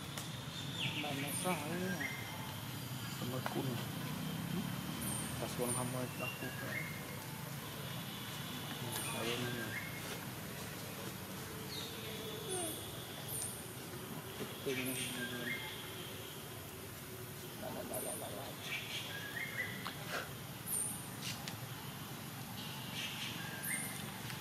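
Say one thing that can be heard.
Dry leaves rustle as monkeys move on the ground.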